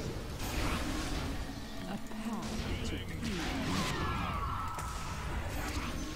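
Fantasy battle sound effects crackle and whoosh as spells are cast.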